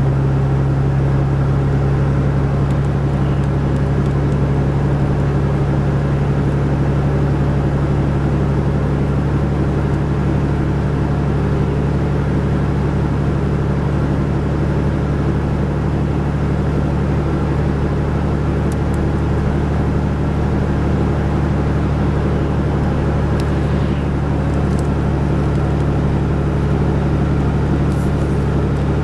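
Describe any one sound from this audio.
A car's engine hums steadily from inside while driving.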